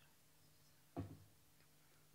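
A glass knocks down onto a desk.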